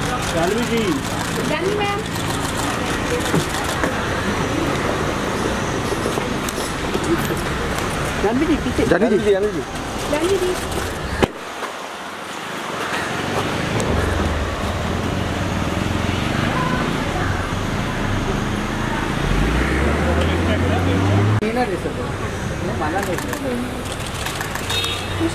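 Men call out and talk loudly nearby.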